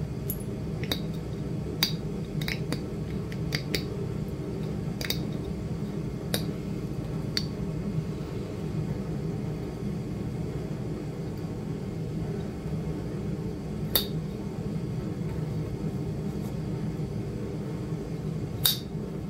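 A metal pick scrapes and scratches at hard hide.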